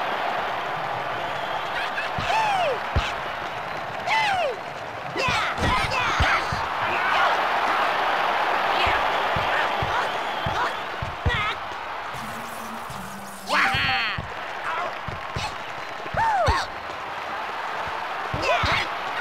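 A football is kicked again and again with sharp thuds.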